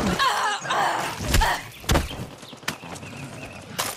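A dog snarls and growls up close.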